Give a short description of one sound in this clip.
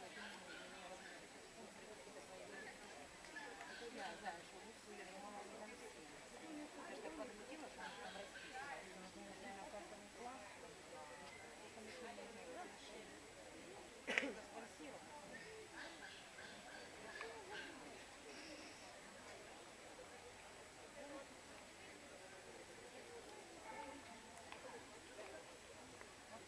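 A crowd of people chatters outdoors in the background.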